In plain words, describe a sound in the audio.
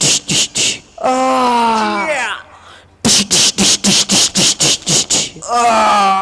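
A group of young men shouts with falling voices.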